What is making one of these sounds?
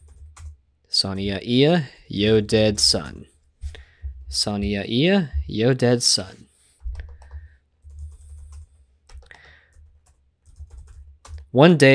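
A man speaks calmly and close to a microphone, in short bursts.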